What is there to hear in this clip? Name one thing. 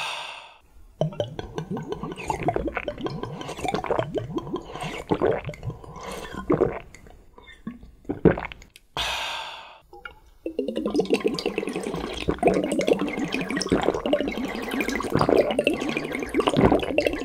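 A young man slurps and gulps liquid from a bottle.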